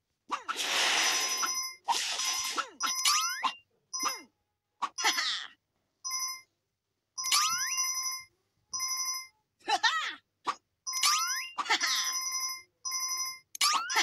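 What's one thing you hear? Game coins chime brightly in quick repeated bursts.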